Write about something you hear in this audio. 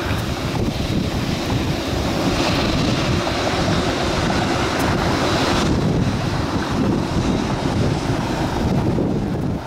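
A large jet's engines roar steadily as the airliner taxis past.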